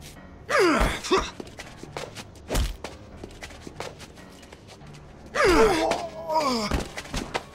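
Bodies thud and scuffle in a struggle.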